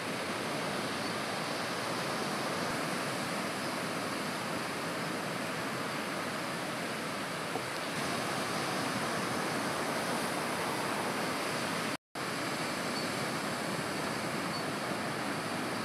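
Waves break and roll with a steady rushing roar.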